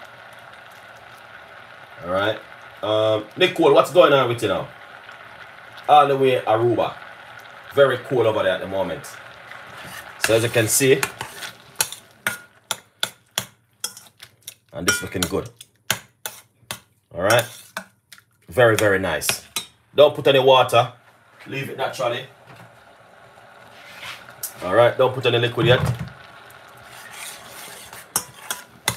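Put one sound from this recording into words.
Berries bubble and simmer in a pot.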